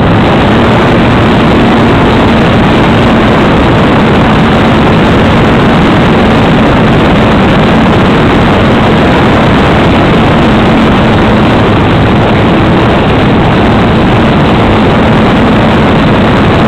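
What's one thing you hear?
A small propeller motor whirs steadily at high speed.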